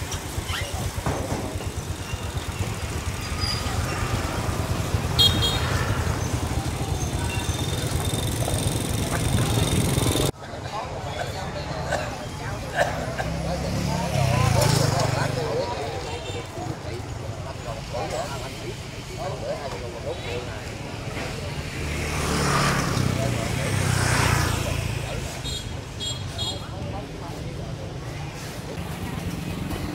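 Voices chatter in a busy outdoor market.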